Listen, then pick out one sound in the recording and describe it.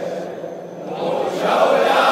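A man sings a lament loudly through a microphone.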